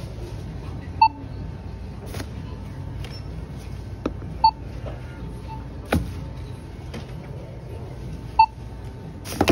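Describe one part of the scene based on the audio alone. A checkout scanner beeps.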